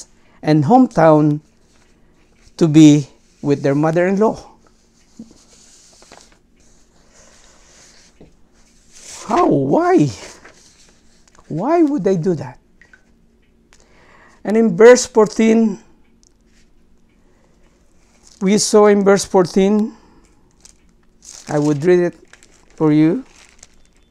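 A middle-aged man speaks calmly into a close microphone, with pauses between phrases.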